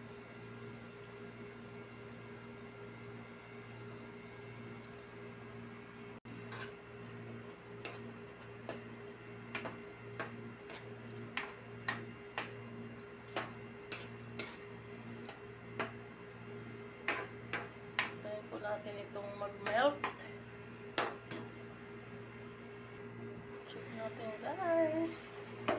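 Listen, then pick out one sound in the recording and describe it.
A sauce bubbles and simmers in a pan.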